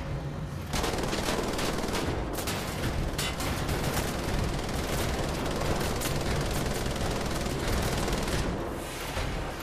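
A rapid burst of gunfire rattles in a game.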